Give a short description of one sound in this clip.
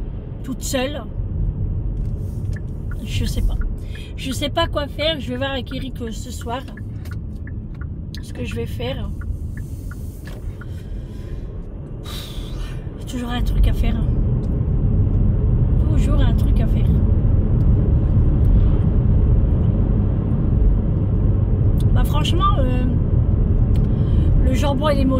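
A car engine rumbles low and steady while driving, louder from the middle on.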